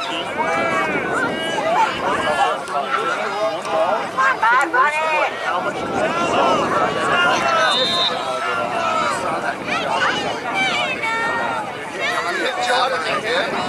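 Young children shout and cheer excitedly outdoors.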